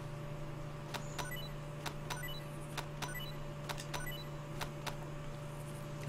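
Short electronic chimes sound repeatedly as items are picked up.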